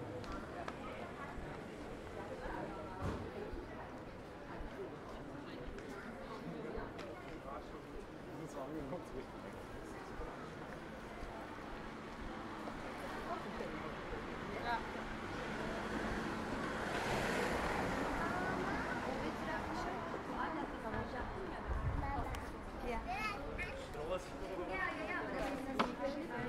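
People's voices murmur along a busy pedestrian street.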